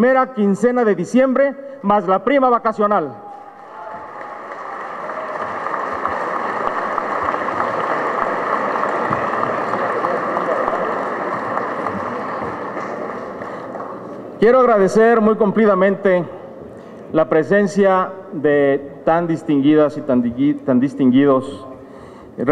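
A man speaks formally through a microphone.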